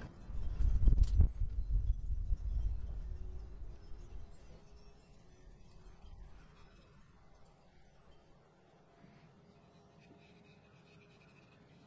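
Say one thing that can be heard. Hands rub and handle a bow limb.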